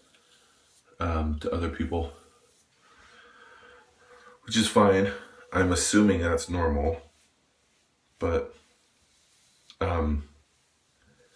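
A man talks close by, with animation.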